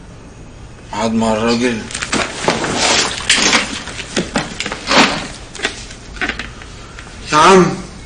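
A man groans and sobs in distress.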